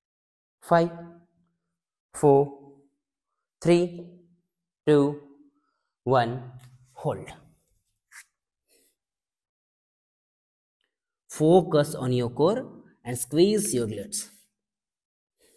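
A young man speaks calmly and clearly, in short phrases with pauses.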